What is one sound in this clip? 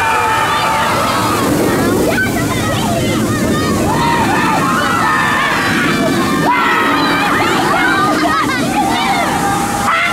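A roller coaster train rumbles and roars along its track.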